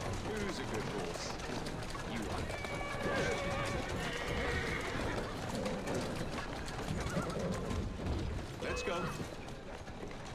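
A horse-drawn carriage rattles over cobblestones.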